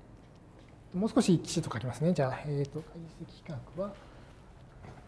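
A middle-aged man lectures to a class.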